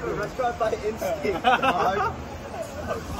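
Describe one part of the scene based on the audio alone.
Young men laugh and talk loudly close by.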